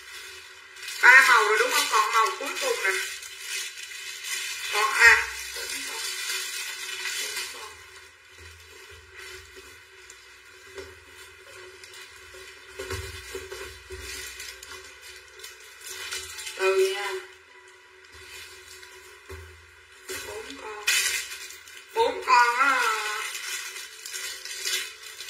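A woman talks with animation close by.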